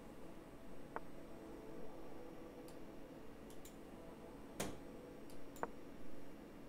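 A short click sounds as a chess piece is moved.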